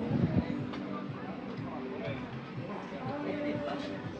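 Adults chat quietly at nearby tables outdoors.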